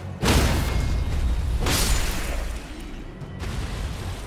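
A horse's hooves thud on the ground.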